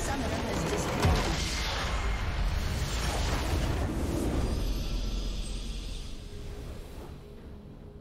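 A huge game explosion booms and rolls away.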